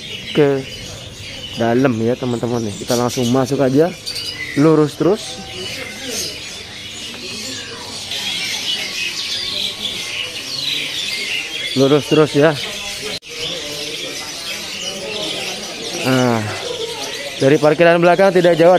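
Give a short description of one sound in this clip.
Caged birds chirp and twitter all around.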